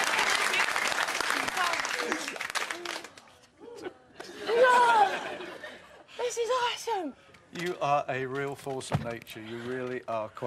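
A young woman talks and laughs excitedly.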